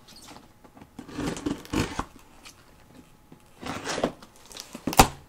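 Cardboard rustles and scrapes as a box is handled close by.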